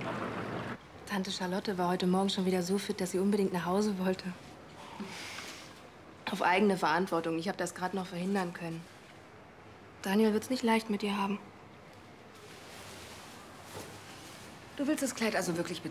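A young woman talks cheerfully nearby.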